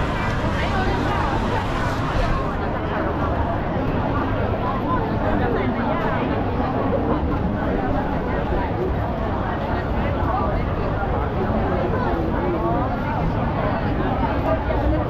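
A large crowd of men and women chatters all around outdoors.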